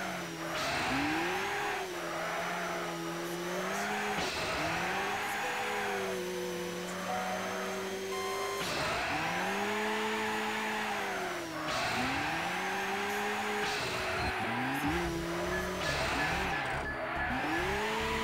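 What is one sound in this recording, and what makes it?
A racing car engine roars, rising and falling in pitch as the gears shift.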